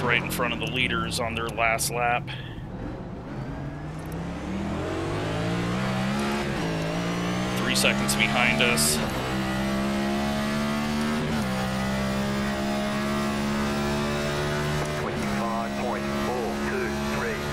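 A race car engine roars loudly, rising and falling in pitch as it shifts gears.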